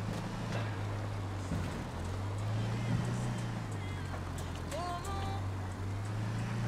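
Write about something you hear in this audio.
A car engine hums steadily as a vehicle drives slowly.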